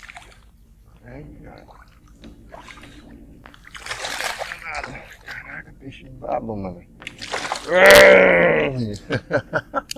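A man speaks excitedly close by.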